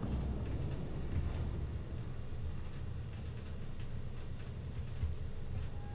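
A ship's engine rumbles low and steadily as the ship ploughs through water.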